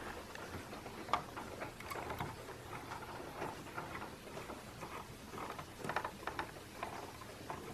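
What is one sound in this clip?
Window blind slats rattle and clack.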